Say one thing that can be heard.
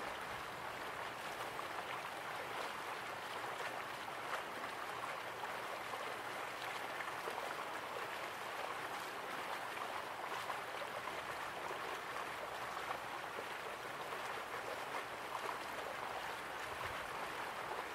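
Water splashes steadily as a small waterfall pours into a pool.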